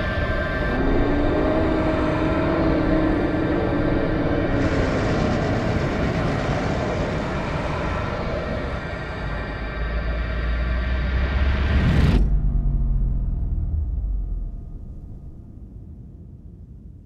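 A deep, roaring rumble swells, then cuts off suddenly and fades away low.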